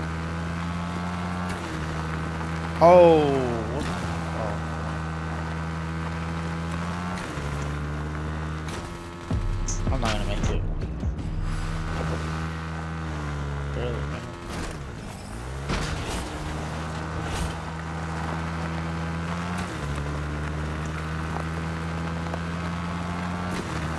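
A dirt bike engine revs and hums steadily.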